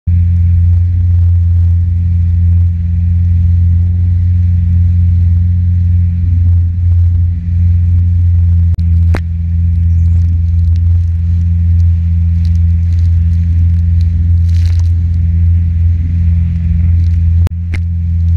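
Water splashes and hisses against the hull of a jet ski.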